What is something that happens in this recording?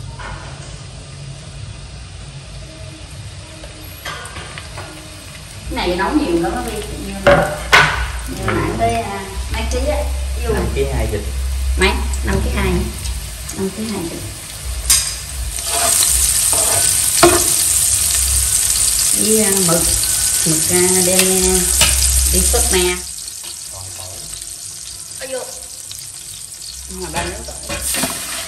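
Onions sizzle in hot oil in a pot.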